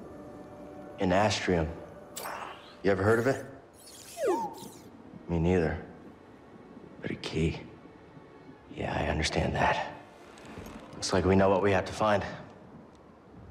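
A young man speaks thoughtfully, close by.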